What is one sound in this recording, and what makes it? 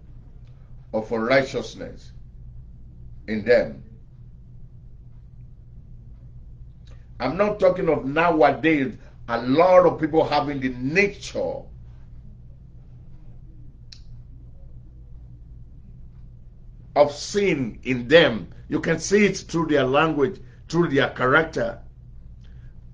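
A middle-aged man speaks calmly and earnestly into a close microphone, with long pauses.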